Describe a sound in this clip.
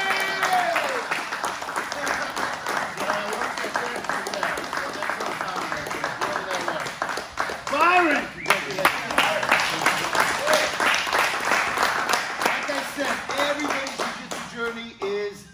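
A small crowd claps and cheers loudly.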